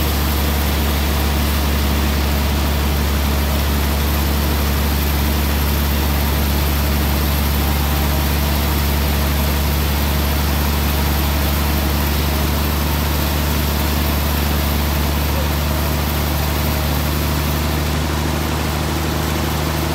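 A large band saw runs with a loud, steady drone as it cuts slowly through a log.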